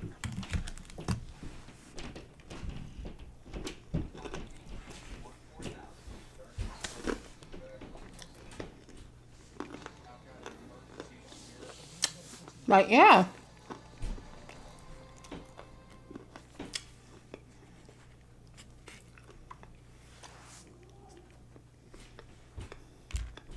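A woman chews and smacks her food close to a microphone.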